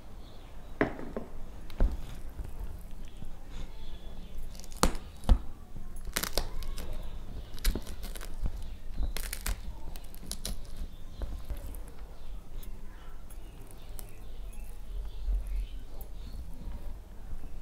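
Fingertips click against a steel plate.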